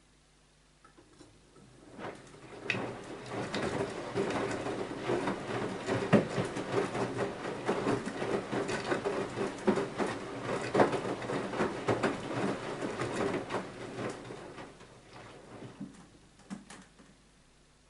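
A washing machine drum tumbles wet laundry with sloshing, splashing water.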